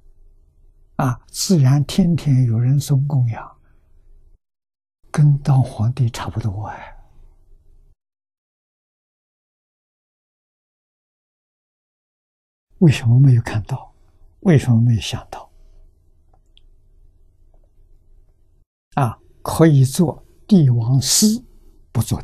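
An elderly man speaks calmly, in short phrases with pauses.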